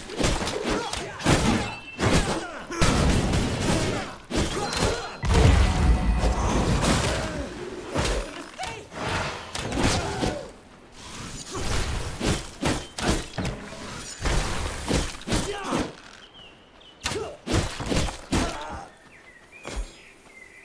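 Swords clash and spells burst in quick, repeated hits during a fight.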